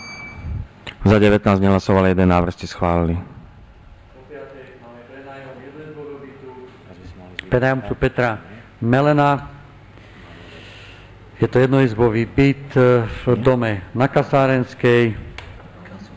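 A middle-aged man reads out loud through a microphone in a large echoing hall.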